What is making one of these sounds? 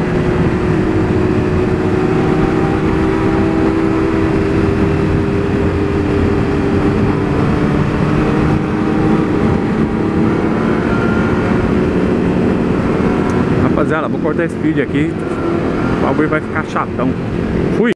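A motorcycle engine hums steadily up close while riding.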